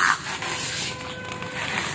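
Plastic bags rustle as a man handles them.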